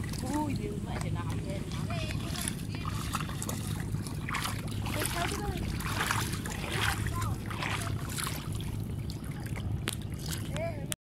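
Water splashes as a young boy wades and beats a stick on the surface.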